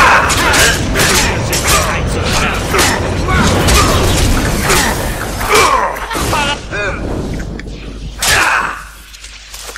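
Swords clash and slash in quick, repeated strikes.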